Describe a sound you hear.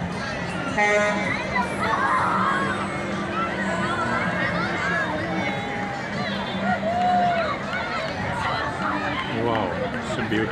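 A parade float's engine rumbles slowly past.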